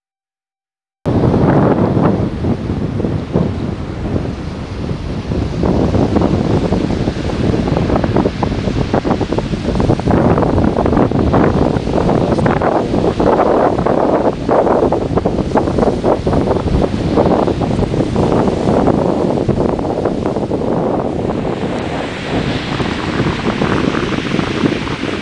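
Waves wash gently onto a sandy shore.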